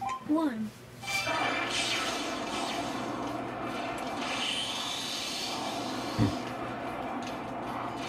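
Video game music and sound effects play from a television's speakers.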